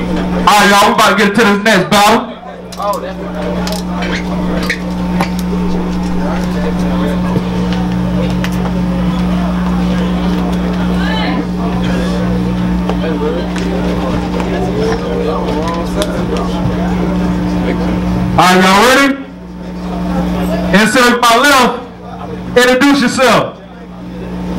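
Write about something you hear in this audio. A young man raps loudly into a microphone through loudspeakers.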